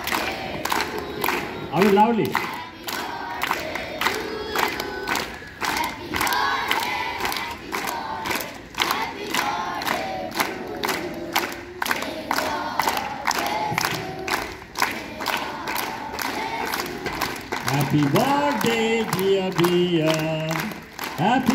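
A large group of children chant together in unison outdoors.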